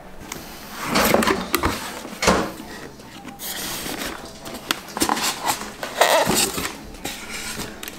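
Cardboard rustles and scrapes as a box is opened.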